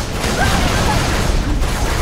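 An energy weapon fires with crackling electric bursts.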